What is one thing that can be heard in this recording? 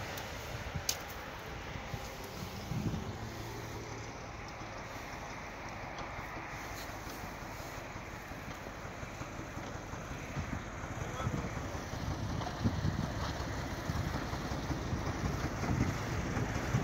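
A railcar rumbles along the track, growing louder as it approaches.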